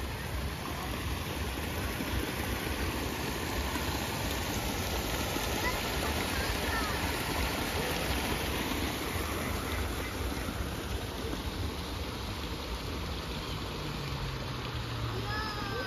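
Water splashes and gurgles as it pours over rocks into a stream.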